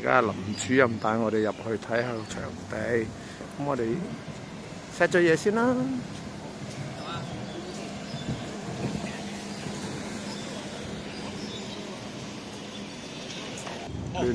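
Footsteps walk on pavement nearby.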